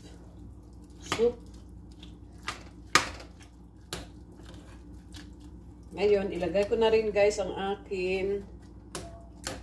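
A metal spoon clinks and scrapes against a cooking pot.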